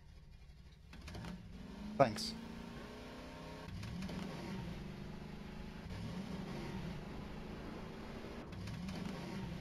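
A vehicle engine hums and revs.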